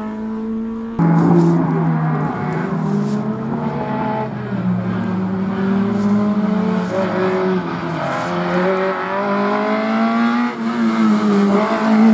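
A racing car approaches along a road, its engine roaring and rising through the gears.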